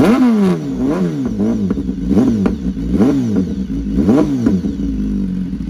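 A motorcycle engine revs sharply several times up close.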